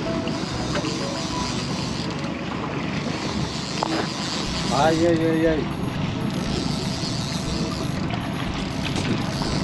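Water splashes against a boat's hull.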